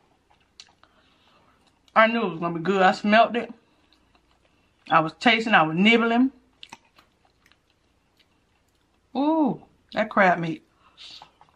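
A woman chews food close to a microphone.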